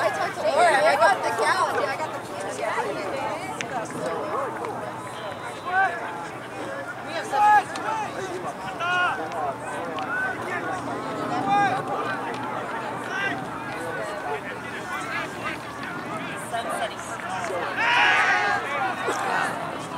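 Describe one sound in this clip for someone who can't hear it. Spectators and players shout and call out across an open field outdoors.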